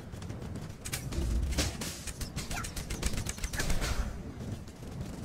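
Game combat sounds clash and thud in bursts.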